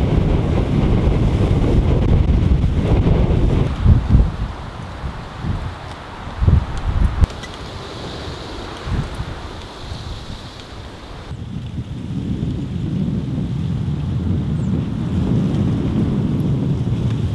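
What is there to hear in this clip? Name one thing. Wind blows in strong gusts outdoors.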